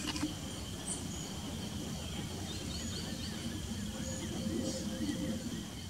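A woodpecker taps on a dead tree trunk.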